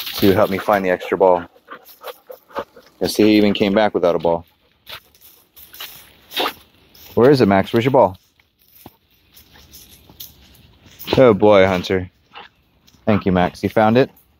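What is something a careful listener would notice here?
Dogs' paws rustle through dry leaf litter.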